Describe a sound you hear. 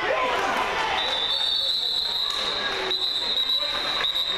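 A referee's whistle blows long and shrill.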